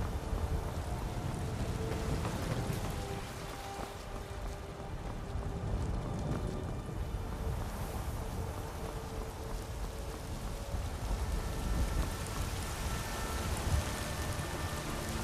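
Footsteps run quickly over stone and wooden planks.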